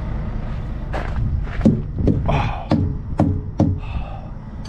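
A hammer thumps against a truck tyre several times.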